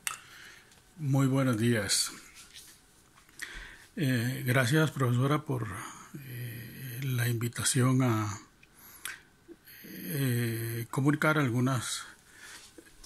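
An elderly man speaks calmly and close to a phone microphone.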